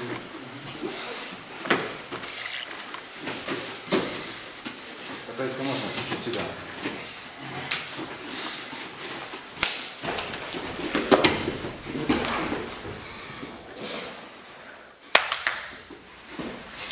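Bodies thump and scuff on a padded mat.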